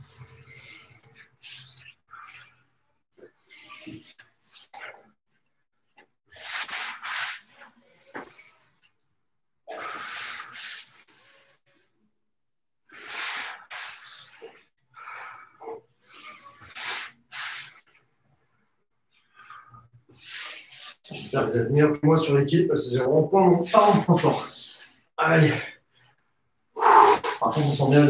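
Feet thump and shuffle on a floor.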